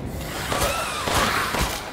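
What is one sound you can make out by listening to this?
A pistol fires a sharp shot.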